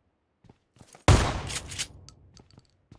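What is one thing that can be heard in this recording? Gunshots fire loudly in a video game.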